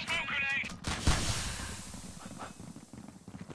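A knife swishes through the air.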